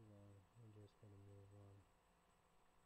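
A young man speaks briefly and calmly, close by.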